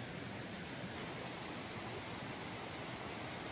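A stream trickles and flows nearby.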